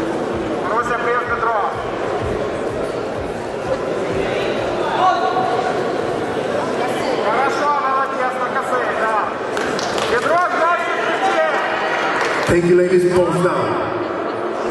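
An audience shouts and cheers in a large hall.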